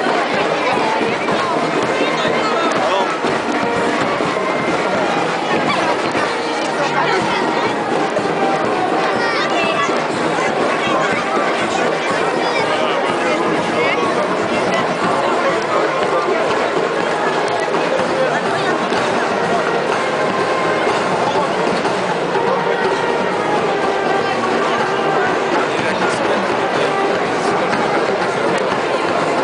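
Children call out excitedly nearby.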